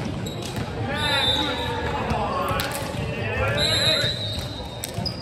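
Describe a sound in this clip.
Players call out and shout to each other in a large echoing hall.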